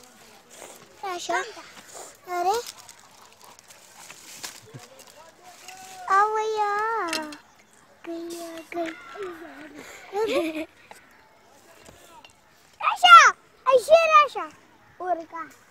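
A young boy talks and calls out nearby, outdoors.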